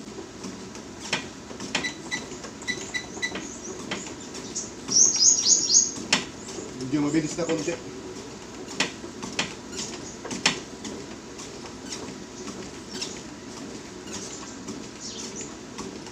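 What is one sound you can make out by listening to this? A treadmill motor hums steadily.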